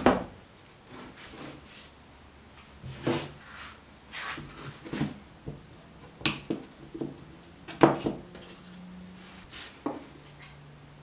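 Small metal parts clatter and knock on a wooden workbench.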